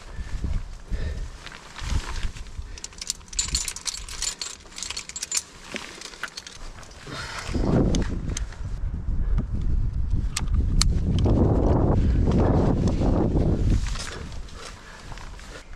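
Ice axes strike and chip into hard ice in sharp, repeated thuds.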